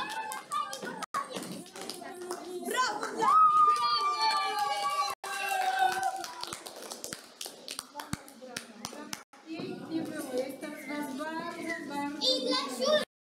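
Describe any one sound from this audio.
Children talk and laugh excitedly nearby.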